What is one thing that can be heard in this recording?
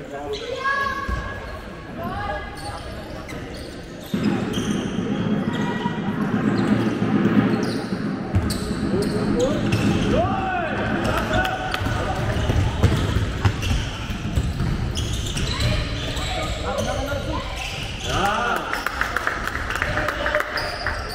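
Sports shoes squeak on a sports hall floor in a large echoing hall.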